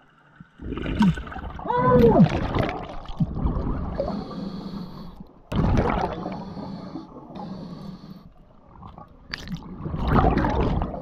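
Air bubbles rush and gurgle from a diver's breathing regulator underwater.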